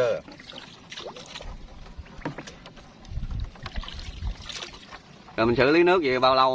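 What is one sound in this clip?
A pole splashes and swishes through water.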